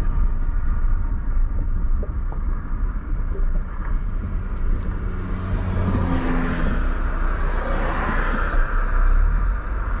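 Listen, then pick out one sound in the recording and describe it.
A car's engine and tyres rumble steadily from inside while driving.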